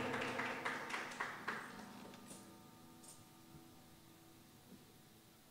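An electric guitar chord rings and slowly fades.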